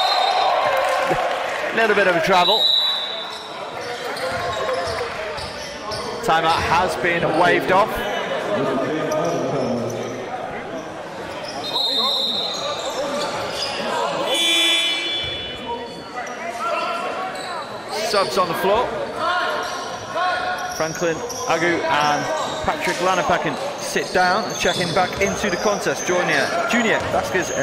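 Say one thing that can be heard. Basketball shoes squeak sharply on a gym floor.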